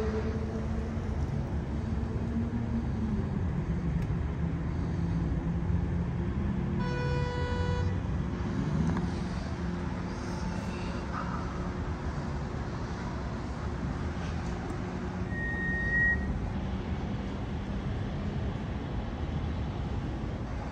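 Traffic rumbles steadily outdoors.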